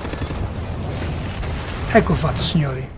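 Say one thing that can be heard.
Automatic gunfire rattles rapidly.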